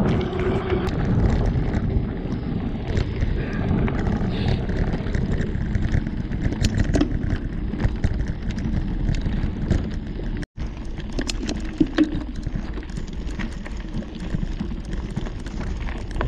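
Loose stones clatter and knock against a bicycle frame.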